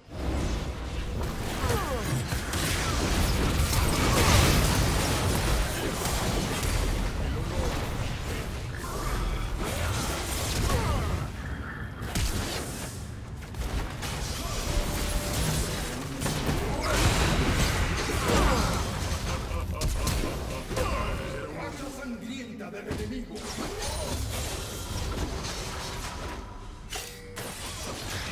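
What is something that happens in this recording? Spell effects in a video game whoosh and crackle during fights.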